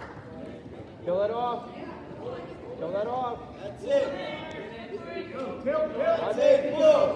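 Men shout loudly from the sidelines.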